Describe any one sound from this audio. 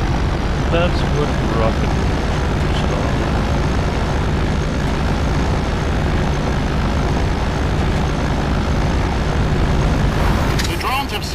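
A vehicle engine rumbles steadily as it drives over dirt.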